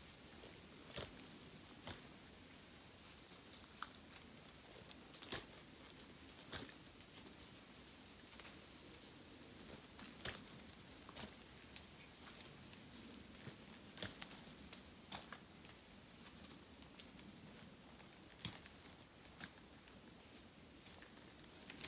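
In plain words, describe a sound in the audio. A climbing stand knocks and clanks against a tree trunk.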